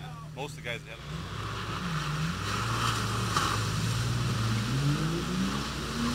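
An engine revs hard, rising in pitch.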